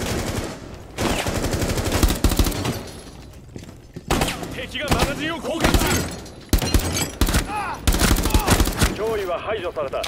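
A rifle fires in rapid bursts, with loud, sharp shots.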